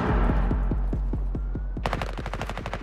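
A rifle shot booms and echoes away.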